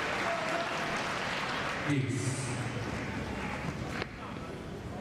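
A large crowd applauds loudly and then dies away.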